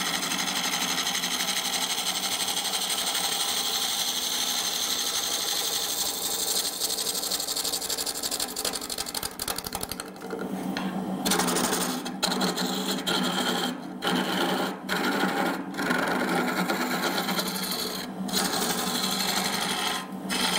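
A wood lathe whirs steadily.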